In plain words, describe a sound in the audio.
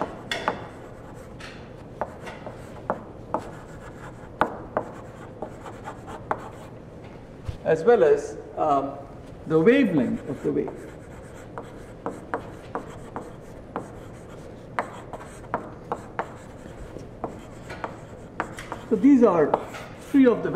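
Chalk taps and scrapes on a blackboard.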